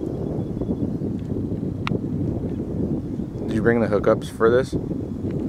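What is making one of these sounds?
Wind rumbles outdoors across open ground.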